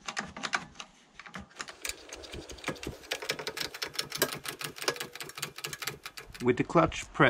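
A quick-release bar clamp ratchets with rapid clicks as its trigger is squeezed.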